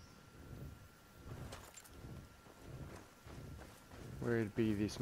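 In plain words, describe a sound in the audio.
Footsteps thud quickly on soft ground.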